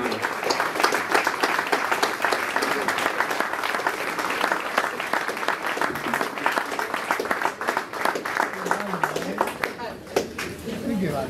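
A crowd applauds and cheers in a large room.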